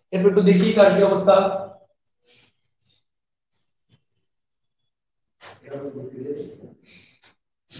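A young man speaks through a microphone in a calm, lecturing voice.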